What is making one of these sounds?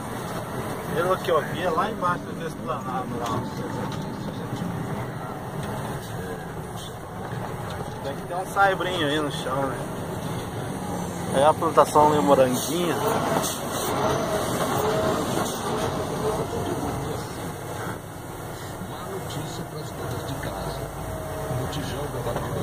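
A vehicle engine rumbles steadily from inside the cab.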